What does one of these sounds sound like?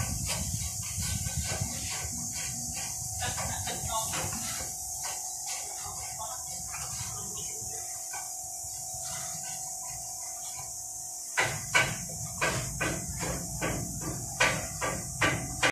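A trowel scrapes and slaps wet cement plaster onto a wall.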